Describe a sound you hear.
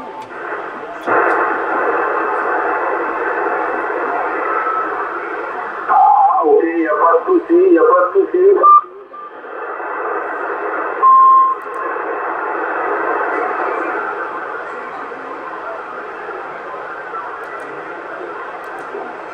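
Static hisses steadily from a radio receiver.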